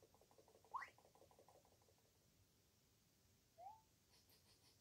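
A short video game sound effect swoops upward.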